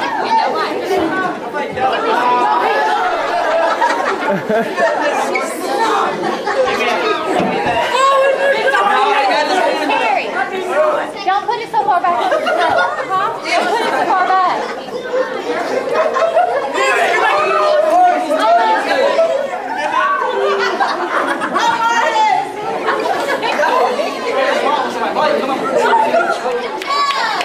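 A crowd of children and adults chatter and laugh close by.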